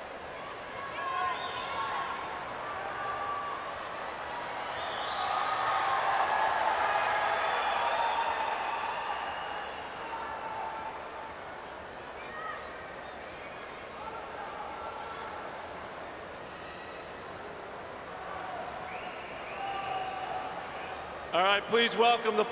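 Young fans call out and shout excitedly nearby.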